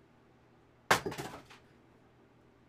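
An axe splits a log with a sharp crack.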